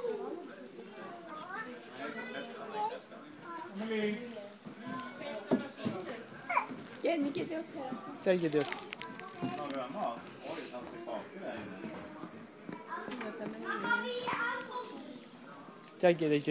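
A small child babbles and chatters close by.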